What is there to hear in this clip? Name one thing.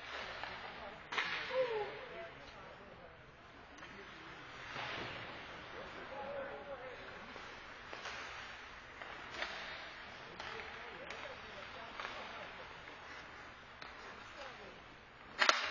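Ice skates scrape and swish across the ice in a large echoing rink.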